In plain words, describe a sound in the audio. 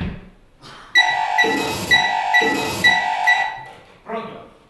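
A telephone rings in short repeated bursts.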